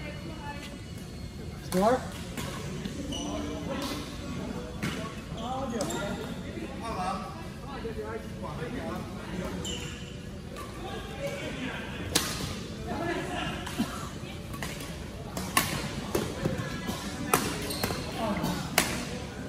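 Badminton rackets hit a shuttlecock with sharp pops in a large echoing hall.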